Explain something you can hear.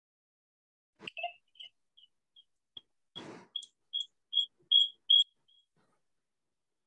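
A phone beeps several times in quick short tones.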